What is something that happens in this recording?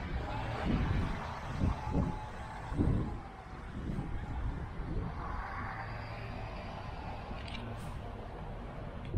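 Wind blows across an open outdoor space and rumbles against the microphone.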